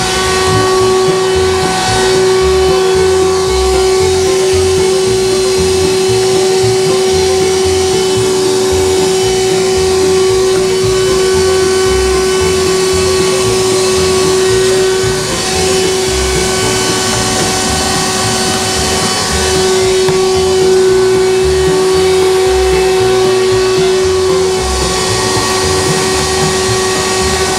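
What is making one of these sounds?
A vacuum hose sucks air and debris along the floor, its pitch shifting as the nozzle moves.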